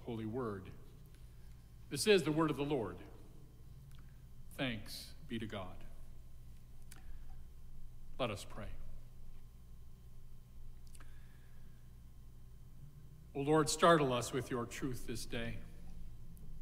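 An elderly man speaks slowly and calmly into a microphone, in a room with a slight echo.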